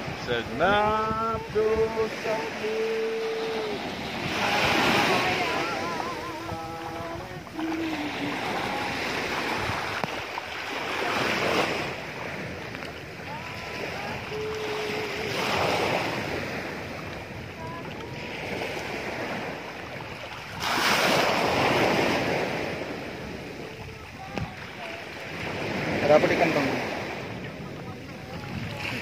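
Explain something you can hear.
Small waves wash onto the shore in repeated surges.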